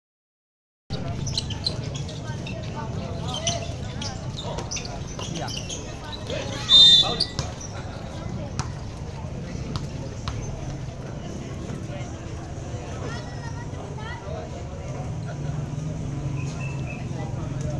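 Sneakers squeak on a court.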